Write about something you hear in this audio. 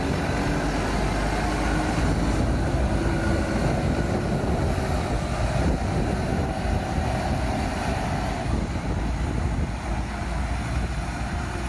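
Heavy tyres crunch over rough dirt.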